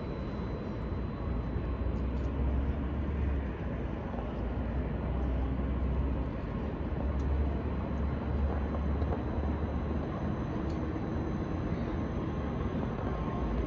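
A distant city hums with a low, steady rumble.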